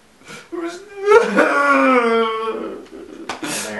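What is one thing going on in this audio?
A man sobs loudly and wails nearby.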